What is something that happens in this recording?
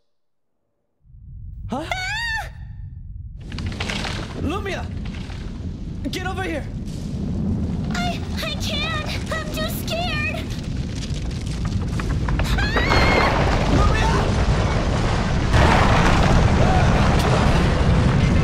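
A low rumbling roar builds up.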